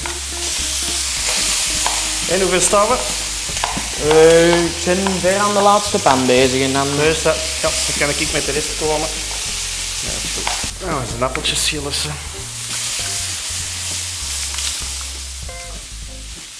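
Meat sizzles loudly in a hot frying pan.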